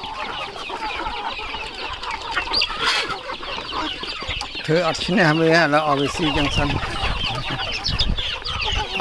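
Many chickens cluck and chirp close by.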